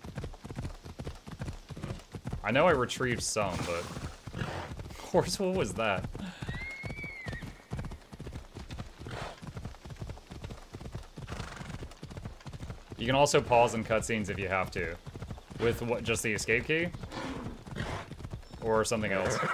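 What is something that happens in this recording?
A horse's hooves thud in a steady gallop.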